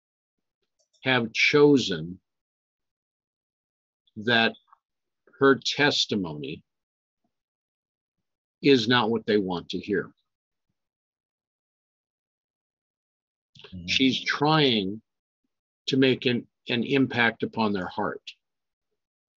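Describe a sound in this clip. An older man reads aloud calmly into a close microphone, in short bursts with pauses.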